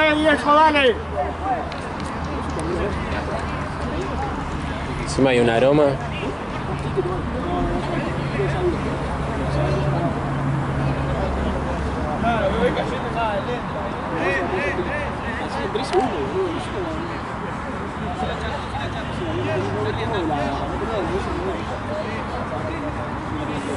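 Several men talk and call out to each other across an open field.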